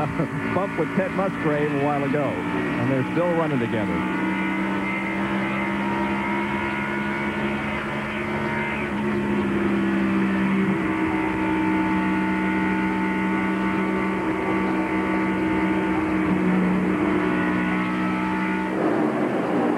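A race car engine roars steadily at high speed close by.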